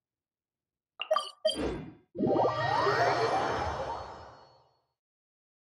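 A game teleport plays a bright whooshing chime.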